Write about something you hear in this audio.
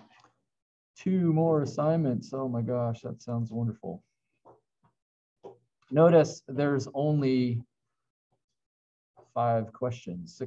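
A middle-aged man speaks calmly over an online call, his voice slightly muffled.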